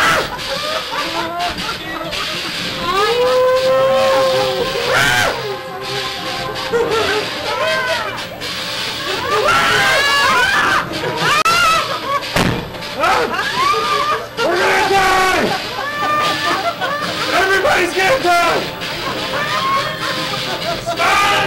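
A crowd of young men and women talk and shout loudly close by.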